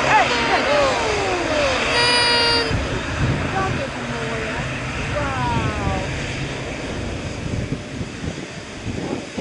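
A jet airliner's engines rumble and whine as the plane taxis close by.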